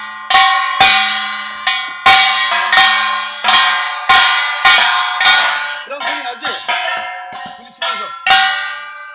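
A small handheld gong is struck sharply again and again, ringing out after each hit.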